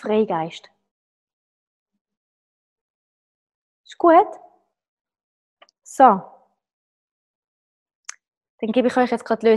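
A woman speaks close by, in short bursts with pauses.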